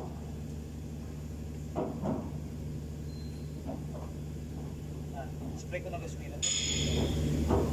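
Metal parts clink and knock as hands work on an engine.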